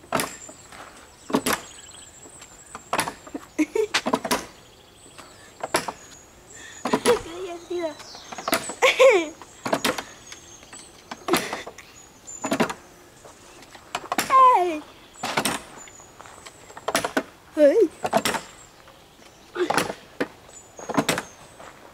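Swing chains creak and clank in a steady back-and-forth rhythm.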